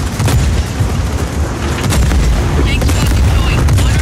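An explosion bursts with a blast.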